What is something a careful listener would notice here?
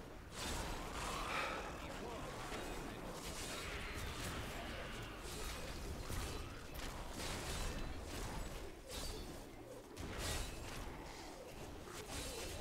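Fiery blasts and spell effects crackle and boom in fast game combat.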